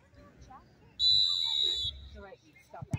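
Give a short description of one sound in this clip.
A referee's whistle blows a short shrill blast outdoors.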